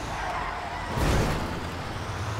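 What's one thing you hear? A heavy truck thuds against a barrier.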